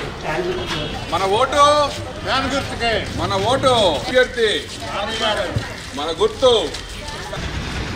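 A crowd of men and women chant slogans loudly outdoors.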